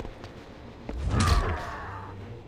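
A magical energy blast whooshes and crackles.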